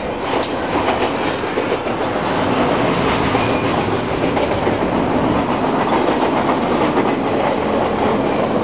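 A long freight train rumbles and clatters steadily past, close by.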